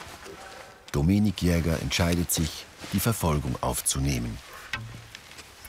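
A man speaks calmly in a deep voice close by.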